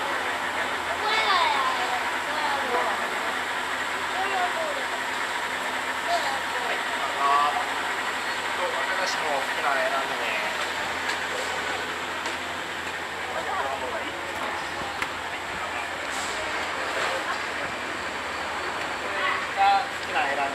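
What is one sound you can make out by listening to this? A young child talks in a high voice.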